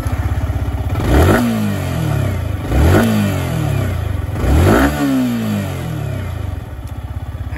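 A motorcycle engine revs sharply three times and drops back.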